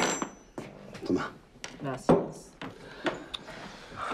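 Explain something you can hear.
A cup is set down on a wooden table with a knock.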